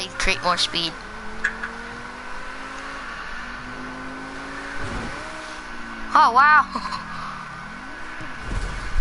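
A car engine revs and roars as it speeds up and slows down.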